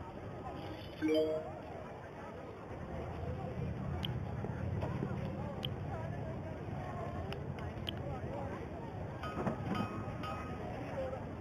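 Short electronic game tones chime.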